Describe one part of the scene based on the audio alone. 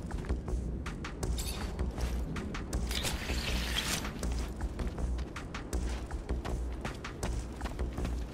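Footsteps crunch on rocky ground at a running pace.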